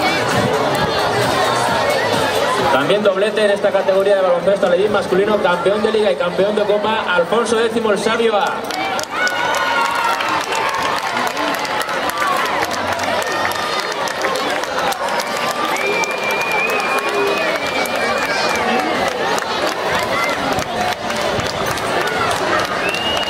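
A crowd of children and adults chatters and cheers outdoors.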